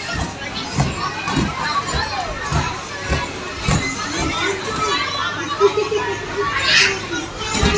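A young girl's feet thump on a trampoline mat as she bounces.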